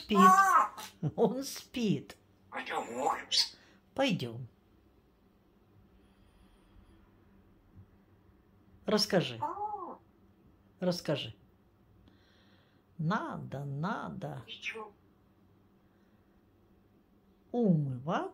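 A parrot chatters and whistles close by in short bursts.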